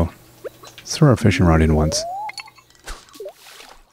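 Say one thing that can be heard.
A fishing line is cast with a whoosh.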